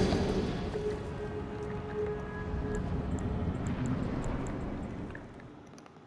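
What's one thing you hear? A deep magical whoosh swells and fades.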